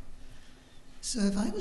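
A woman begins to speak into a microphone.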